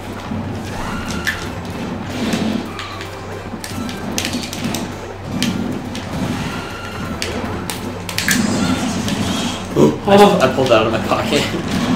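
Video game hits and impact effects crack and thump again and again.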